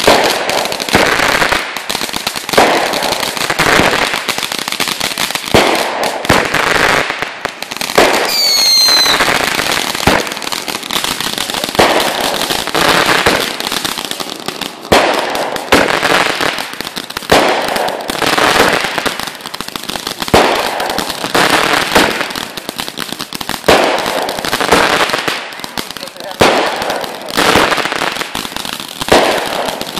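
Fireworks crackle and fizz after each burst.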